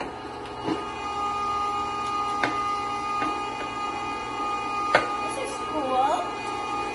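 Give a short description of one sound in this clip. A meat grinder motor hums steadily.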